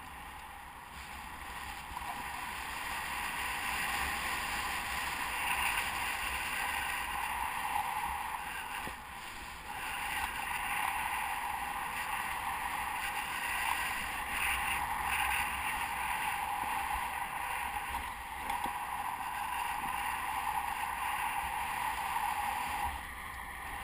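Wind rushes steadily past a gliding paraglider.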